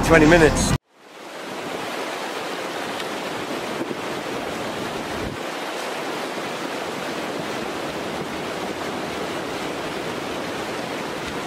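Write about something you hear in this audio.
A shallow river rushes steadily over stones outdoors.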